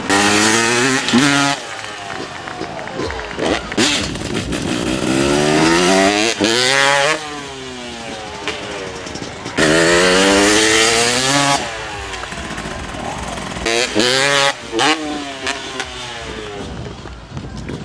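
A motorcycle engine revs loudly, rising and falling in pitch.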